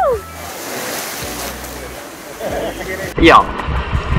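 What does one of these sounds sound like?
Water splashes and churns after a heavy plunge.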